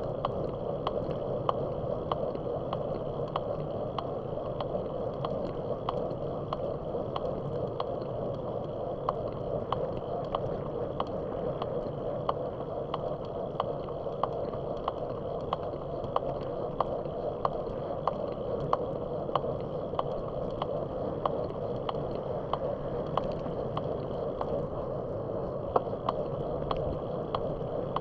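Tyres roll steadily over asphalt.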